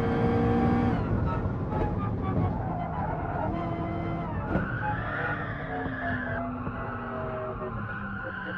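A race car engine drops to lower revs as the car brakes for a corner.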